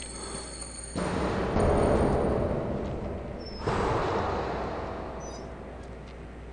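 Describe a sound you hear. A heavy wooden door swings open with a scraping rush.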